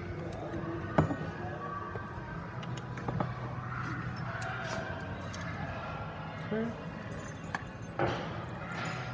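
A glass jug clinks against a bottle.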